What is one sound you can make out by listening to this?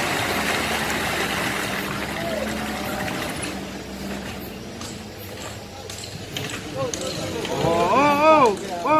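Water sloshes around churning wheels.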